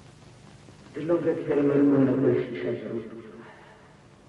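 A woman speaks with emotion, close by.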